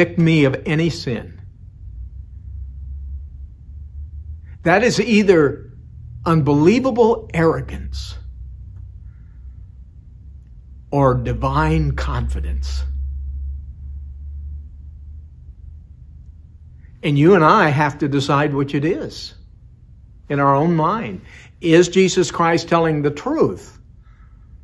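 A middle-aged man speaks calmly and earnestly into a close microphone, with pauses between phrases.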